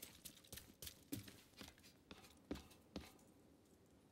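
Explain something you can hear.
Boots clank on metal ladder rungs.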